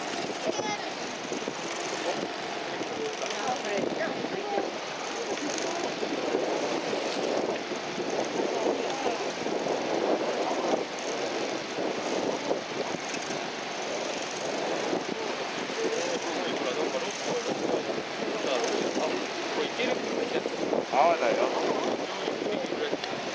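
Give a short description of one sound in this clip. A boat's engine rumbles steadily.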